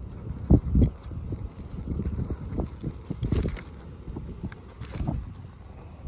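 Hands tear open a soft roasted sweet potato.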